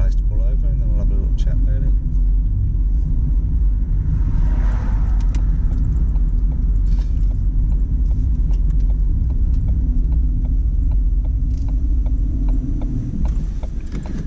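A car engine hums and tyres rumble on the road.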